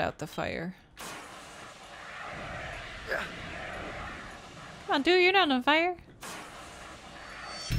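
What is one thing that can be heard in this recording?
A fire extinguisher hisses as it sprays.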